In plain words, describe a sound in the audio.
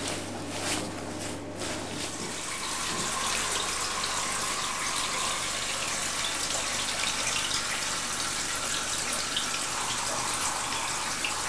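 Hands squish and rub wet foam against skin.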